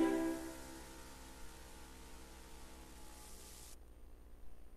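Electronic game music fades out.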